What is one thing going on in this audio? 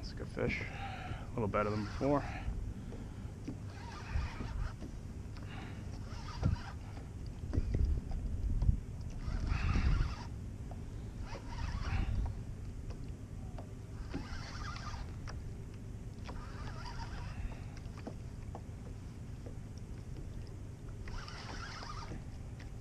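Small waves lap against a kayak's hull.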